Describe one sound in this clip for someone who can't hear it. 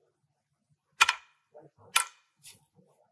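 Glass marbles click against a wooden board.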